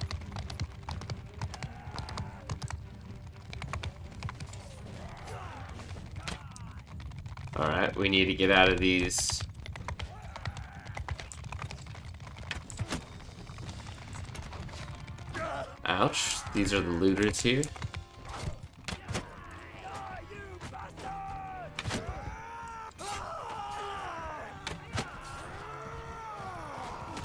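A horse's hooves thud in a steady gallop.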